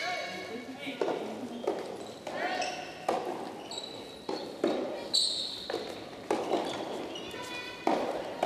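Rackets strike a ball back and forth in a large echoing hall.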